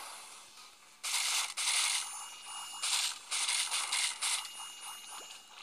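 Cartoonish popping sound effects burst out one after another.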